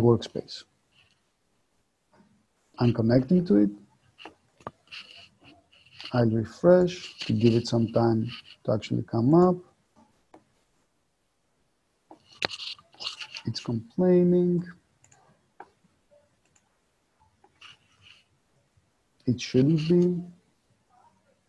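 A man talks calmly and unhurriedly, close to a microphone, in short bursts with pauses.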